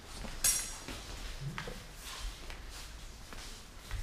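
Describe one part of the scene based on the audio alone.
Fencing blades clash and clatter.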